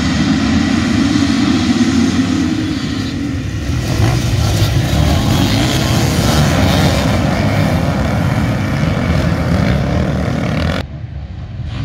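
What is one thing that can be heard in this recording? A pack of dirt bikes revs loudly and roars off together.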